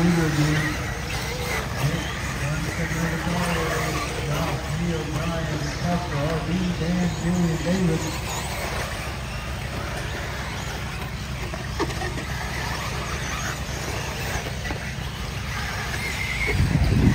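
Small electric toy cars whine as they race over dirt.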